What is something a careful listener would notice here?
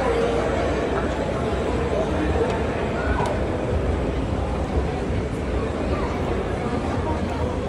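A crowd murmurs, echoing in a large hall.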